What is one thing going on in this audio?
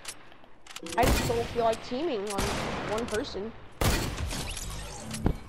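Video game gunshots crack in short bursts.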